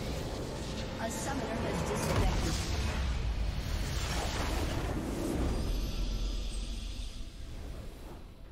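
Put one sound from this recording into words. A huge explosion booms and rumbles.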